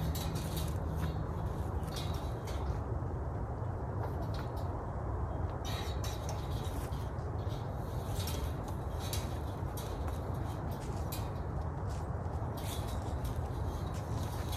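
A metal fence wire rattles and clinks as it is worked by hand.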